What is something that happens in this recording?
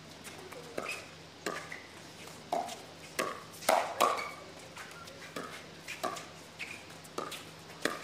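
Players' shoes squeak on the hard court.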